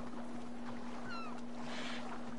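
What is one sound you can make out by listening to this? A seagull cries overhead.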